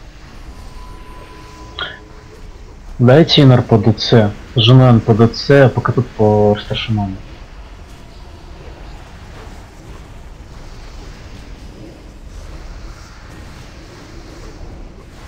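Magic spells whoosh and crackle faintly in a battle.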